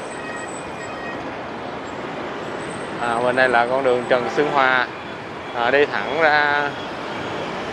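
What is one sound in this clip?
Motorbikes hum along a busy street.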